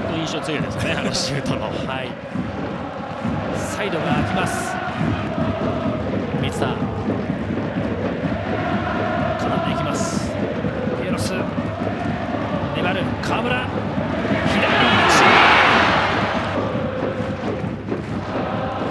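A large stadium crowd chants and sings steadily throughout.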